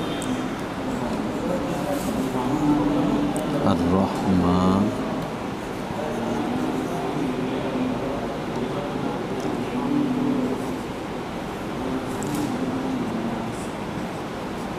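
A man speaks calmly as if teaching.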